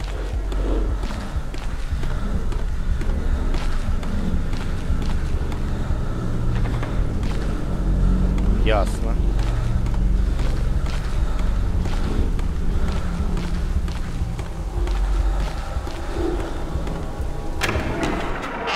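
Footsteps echo slowly along a hard floor.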